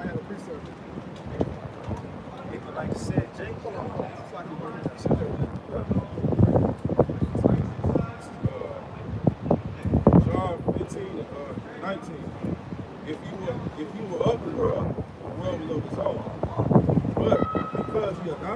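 Several young men talk and call out nearby.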